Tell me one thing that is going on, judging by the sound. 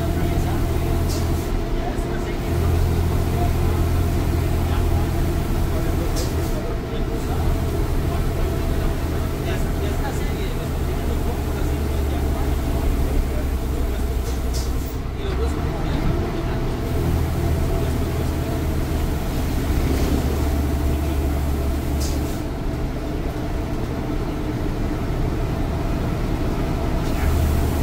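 The bus body rattles and clatters over the road.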